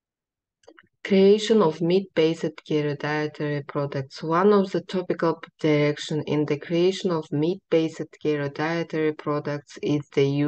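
A young woman speaks calmly into a microphone, reading out.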